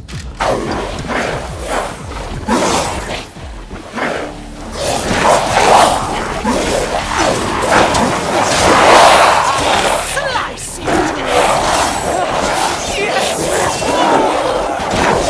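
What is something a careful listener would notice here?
Monstrous creatures snarl and growl.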